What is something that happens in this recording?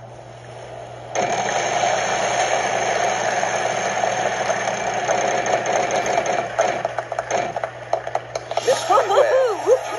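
A game's prize wheel clicks rapidly as it spins, heard through a television speaker.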